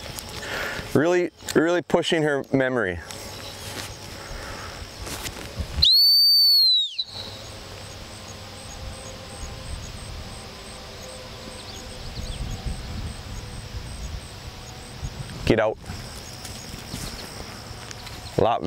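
A man shouts commands from a distance outdoors.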